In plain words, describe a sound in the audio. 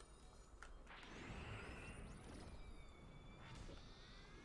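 Wind rushes softly past during a fall through the air.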